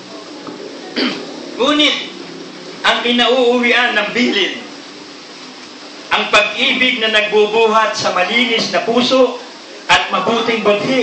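A middle-aged man sings loudly into a microphone, close by.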